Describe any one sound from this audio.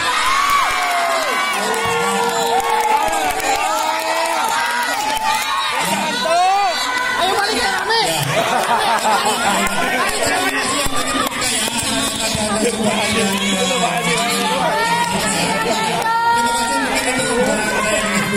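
Many young people shout and cheer outdoors, close by.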